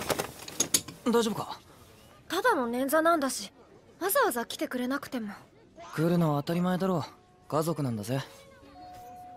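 A young woman speaks gently and hesitantly.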